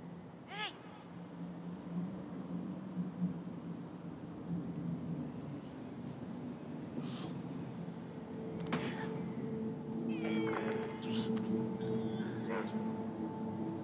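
Small footsteps patter on wooden planks.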